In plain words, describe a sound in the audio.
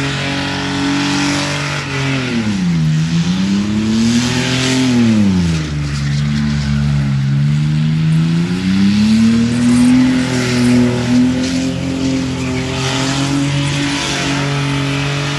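Tyres screech and squeal on the pavement.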